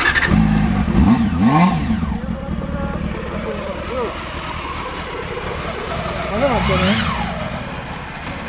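A motorcycle engine revs up sharply and falls back.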